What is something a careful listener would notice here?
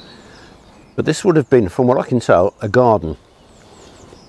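An older man speaks calmly and clearly, close by, outdoors.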